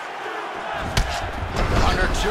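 A kick lands on a body with a thud.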